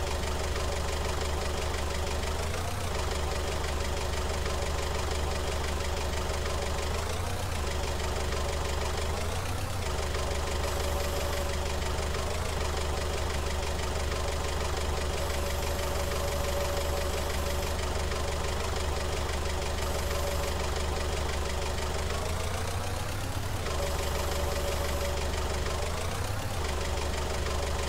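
A forklift engine hums steadily and revs up briefly now and then.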